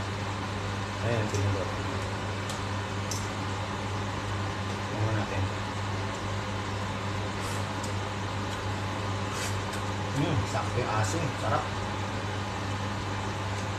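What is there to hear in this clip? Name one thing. A spoon clinks against a metal pot.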